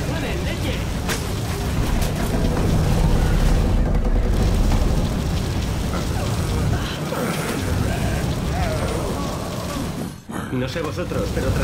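Zombies groan and growl nearby.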